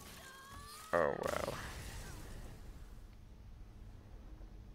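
A magical game spell bursts with a loud crash.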